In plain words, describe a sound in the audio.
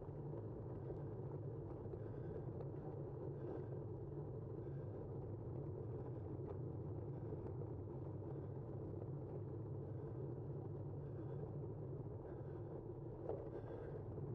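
Tyres hum steadily on asphalt as a vehicle rolls downhill.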